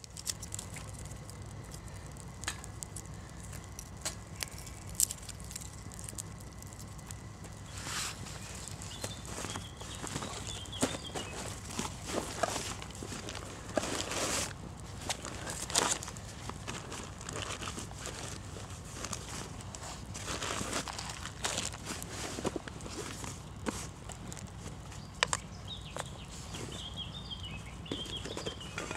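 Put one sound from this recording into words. A wood fire crackles and pops in a small stove.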